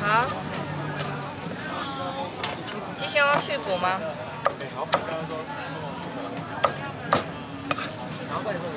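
A cleaver chops sharply on a wooden board.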